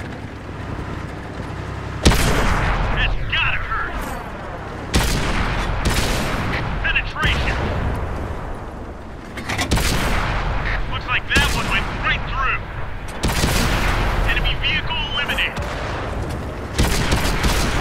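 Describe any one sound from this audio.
Shells explode and debris crashes.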